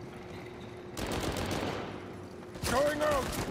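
Rapid gunfire rattles nearby.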